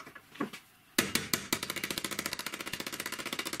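A hammer taps on metal.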